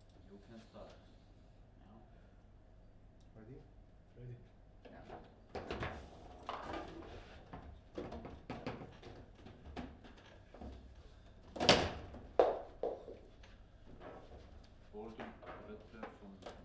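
Table football rods clack as players shift them.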